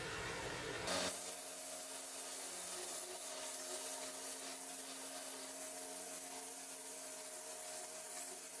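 A belt grinder whirs steadily as metal is ground against it.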